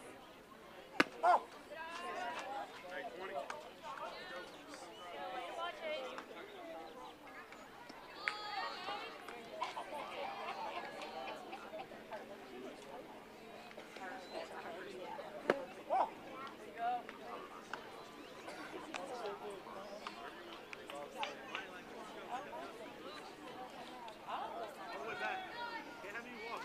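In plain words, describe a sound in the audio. Young players and adults call out and chatter across an open field.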